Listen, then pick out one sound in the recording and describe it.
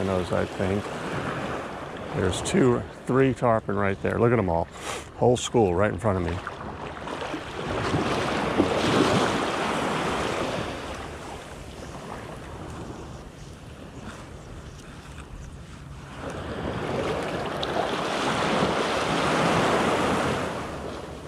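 Small waves wash and lap gently nearby.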